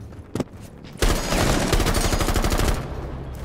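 A rifle fires in a rapid burst of sharp shots.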